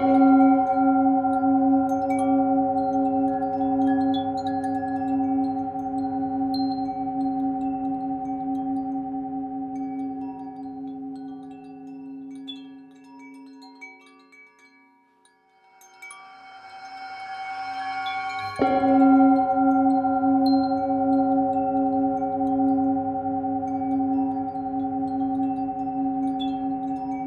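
A singing bowl hums with a steady, ringing tone that fades away and then swells back.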